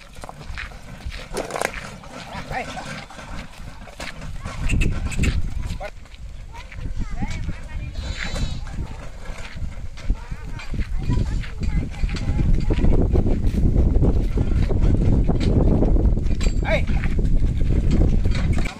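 Hooves clop on a dirt track as bullocks pull a cart.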